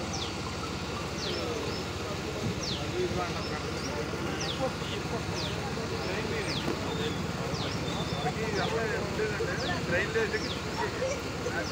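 A man speaks outdoors with animation.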